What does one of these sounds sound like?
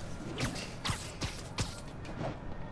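Quick whooshing zips sound in quick succession.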